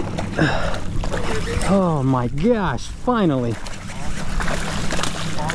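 A fish splashes and thrashes at the surface of the water.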